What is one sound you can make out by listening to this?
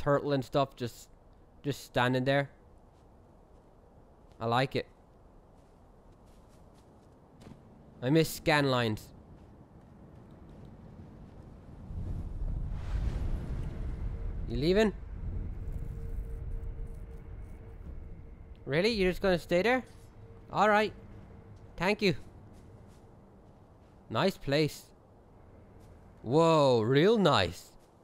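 A young man talks with animation into a close microphone, in short bursts.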